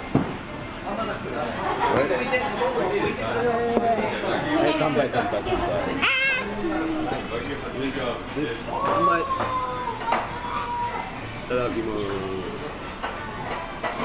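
A young girl talks and laughs brightly.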